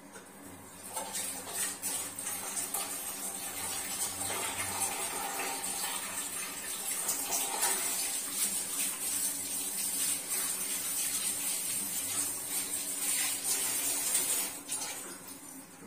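Food sizzles and hisses in a hot pot.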